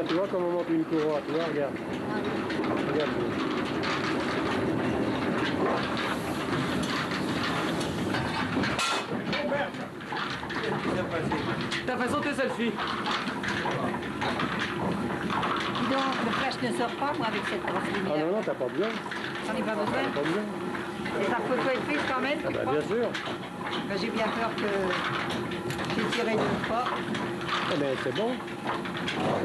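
Gears clatter and knock as a water mill's gear train turns.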